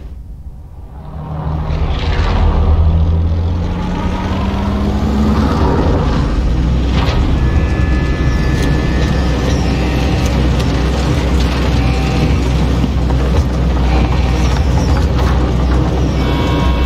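Jet engines drone heavily, heard from inside a plane's cargo cabin.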